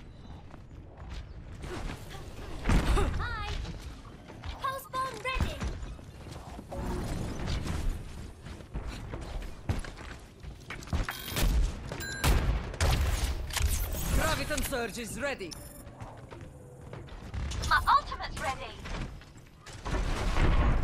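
Quick game footsteps patter on stone.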